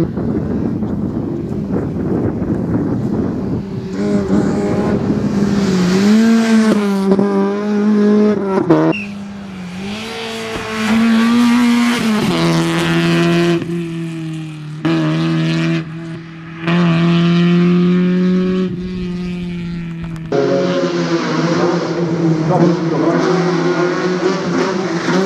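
A BMW E30 rally car's engine screams at full throttle.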